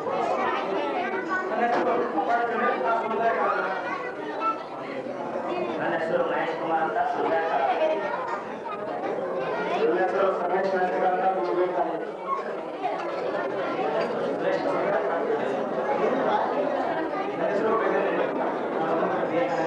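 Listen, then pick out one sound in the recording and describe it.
Several young men take turns speaking briefly into a microphone.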